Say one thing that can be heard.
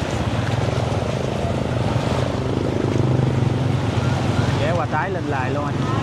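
A motorbike engine putters nearby.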